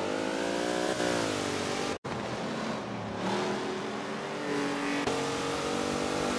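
A truck engine roars and revs, rising and falling in pitch.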